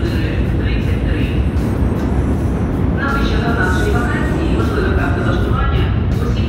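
An escalator rumbles steadily.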